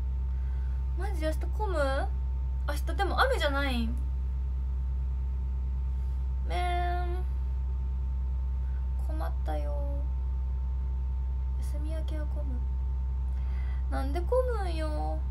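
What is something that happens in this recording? A young woman speaks softly and casually close to a microphone, in short phrases.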